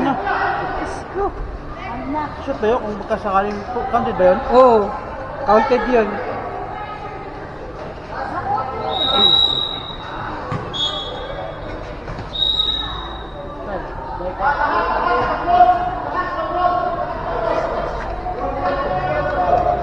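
Young players shout and call out across a large echoing covered court.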